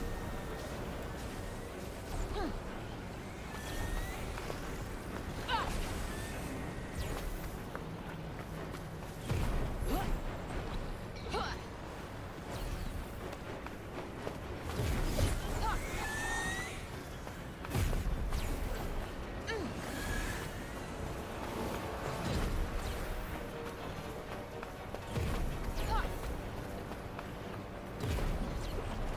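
Water swirls and bubbles as a swimmer darts along underwater.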